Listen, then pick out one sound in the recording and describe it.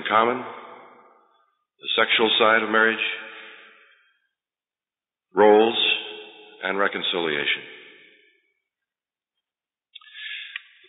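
A middle-aged man speaks slowly and emphatically into a microphone.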